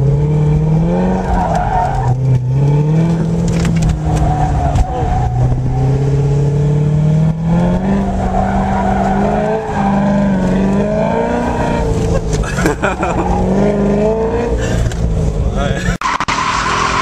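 A car engine revs hard up and down close by, heard from inside the car.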